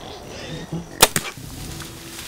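A bow string snaps as an arrow is released.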